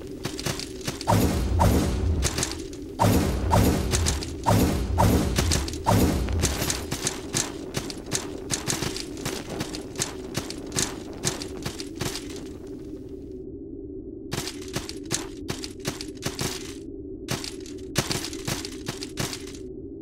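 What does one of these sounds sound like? Quick footsteps tap on stone.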